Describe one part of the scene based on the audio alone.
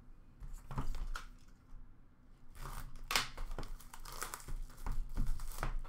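Cardboard boxes rustle and knock as they are handled.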